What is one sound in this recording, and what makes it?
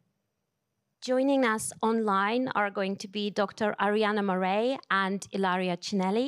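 A young woman speaks into a microphone, reading out calmly over a loudspeaker.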